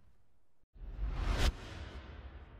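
A bright whoosh swells up and cuts off sharply.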